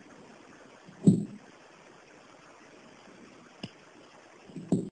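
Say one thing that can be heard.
Hands handle a length of wire, knocking softly against a table now and then.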